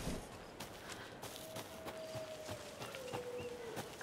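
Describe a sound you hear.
Footsteps crunch on leaves and forest ground.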